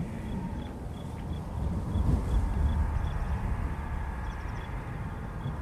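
A magical spell crackles and shimmers softly.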